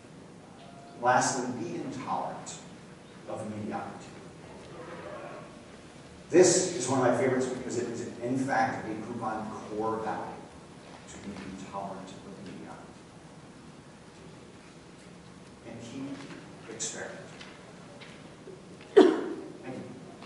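A man speaks to an audience in a room, heard from a distance.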